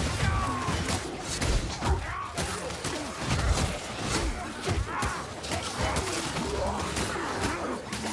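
Blades slash and thud into bodies in quick, repeated blows.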